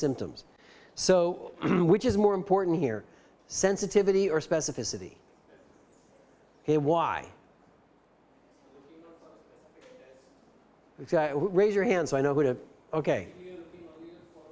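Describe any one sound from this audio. A middle-aged man lectures through a microphone in an echoing hall, speaking in short bursts with pauses.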